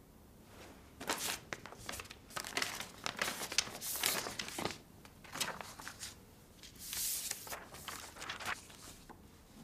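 Paper rustles and crackles as sheets are handled.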